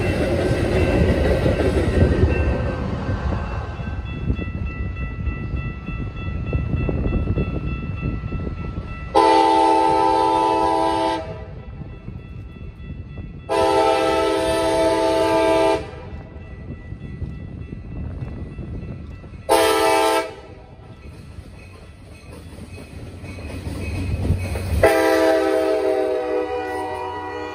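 A diesel locomotive engine rumbles as a train approaches.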